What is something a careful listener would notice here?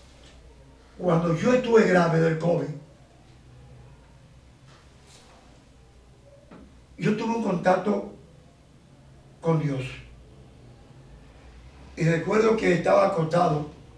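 A middle-aged man speaks with animation into a nearby microphone, in bursts with pauses.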